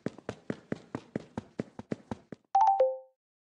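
Footsteps fall on sand in a quick, even rhythm.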